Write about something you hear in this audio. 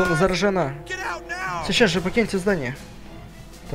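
A man shouts angrily, close by.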